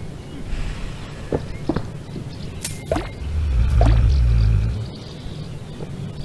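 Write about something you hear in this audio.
A small creature pops up out of holes in the ground with short squeaky chirps.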